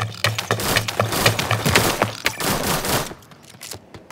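A rifle fires rapid shots in a video game.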